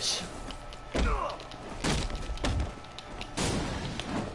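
Punches land with heavy, dull thuds during a brawl.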